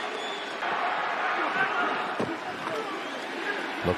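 Football players shout calls across an open field.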